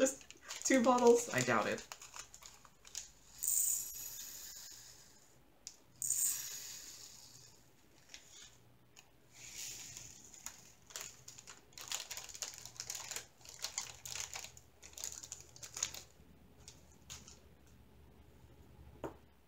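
Small plastic containers click and rattle as they are handled.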